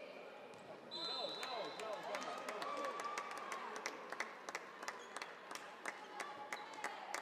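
A volleyball slaps against hands and bounces on the floor.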